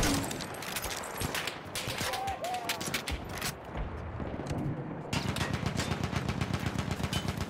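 Gunshots crack and pop in the distance.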